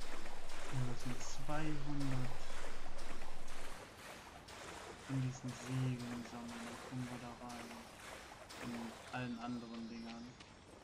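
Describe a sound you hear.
A man talks calmly into a microphone, close by.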